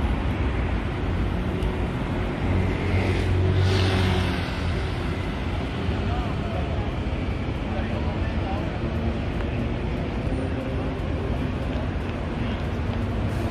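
Traffic hums steadily in the background.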